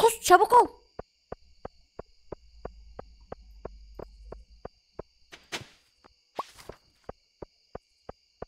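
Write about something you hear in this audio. Footsteps tap quickly and evenly on a stone path.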